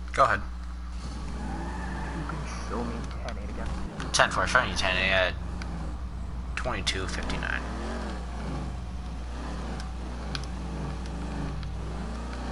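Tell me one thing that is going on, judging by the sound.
A car engine revs and roars as the car drives off.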